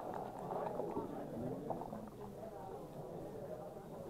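Dice roll and clatter on a backgammon board.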